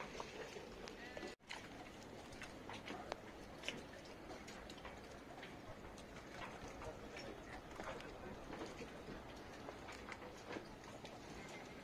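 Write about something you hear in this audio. Water laps gently against boat hulls.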